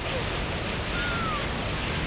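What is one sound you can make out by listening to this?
Guns fire in rapid blasts.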